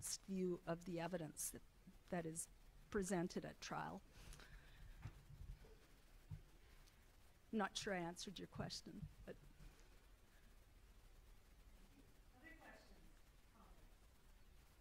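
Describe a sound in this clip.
A woman speaks calmly into a microphone in a large echoing hall, with pauses.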